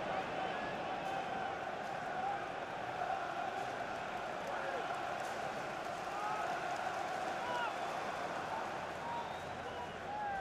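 A large stadium crowd roars and chants steadily throughout.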